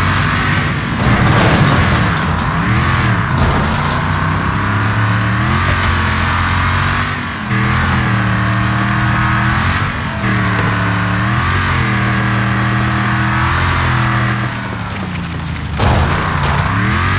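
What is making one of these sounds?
Metal crashes and scrapes as vehicles collide.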